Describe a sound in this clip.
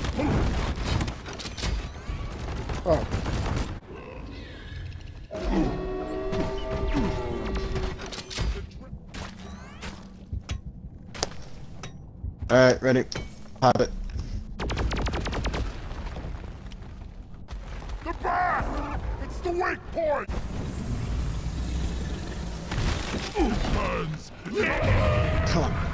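Guns fire rapidly and explosions boom in a video game battle.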